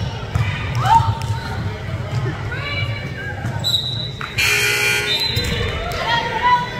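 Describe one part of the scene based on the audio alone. Voices of players and spectators call out in a large echoing gym.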